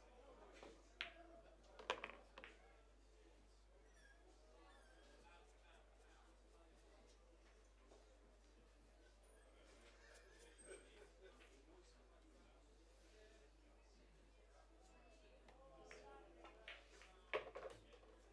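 A cue tip strikes a pool ball with a sharp click.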